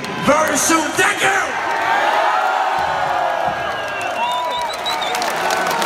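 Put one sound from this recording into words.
A large crowd cheers and screams loudly at a concert.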